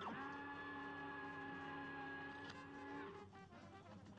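A laser beam hums steadily, then cuts off.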